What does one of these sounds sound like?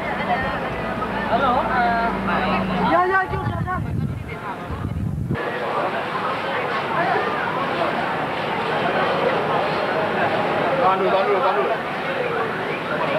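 A crowd of young people chatter and talk over one another nearby.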